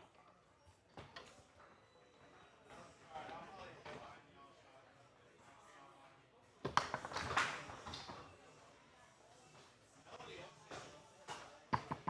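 Plastic rods clack and spin on a foosball table.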